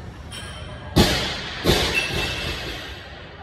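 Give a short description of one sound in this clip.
A loaded barbell clanks and its plates rattle.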